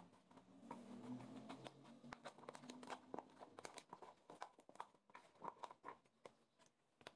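Forks stir and scrape through food in a bowl.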